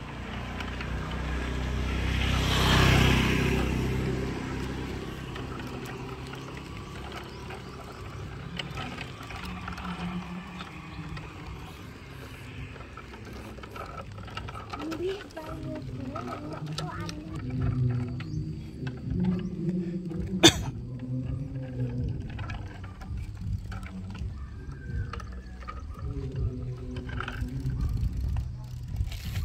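Plastic tricycle wheels roll and rattle on a paved lane.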